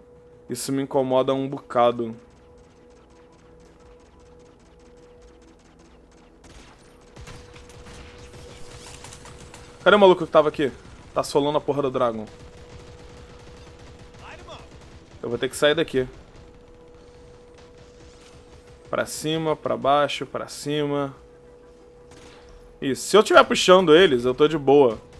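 Game weapons fire and blasts crackle in quick bursts.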